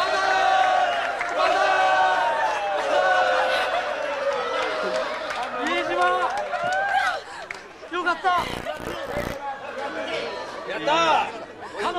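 A studio crowd cheers and shouts.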